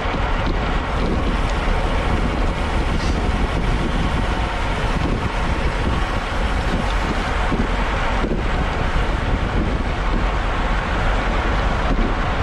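Strong wind roars over a microphone on a moving bicycle.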